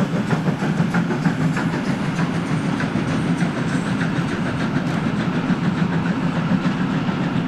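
Freight wagons rumble and clatter past on the rails.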